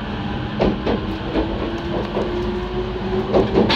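A passing train rushes by close alongside.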